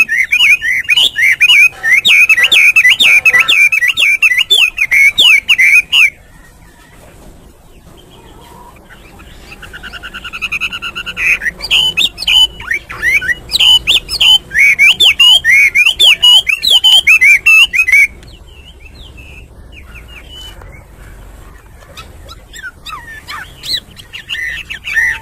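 A songbird sings loud, rapid, warbling phrases close by.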